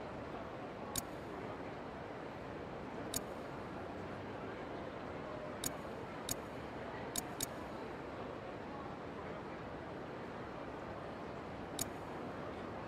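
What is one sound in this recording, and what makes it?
Short, sharp menu clicks sound now and then.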